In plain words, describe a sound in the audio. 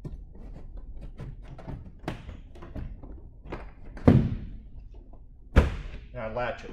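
A door latch clicks and thumps shut.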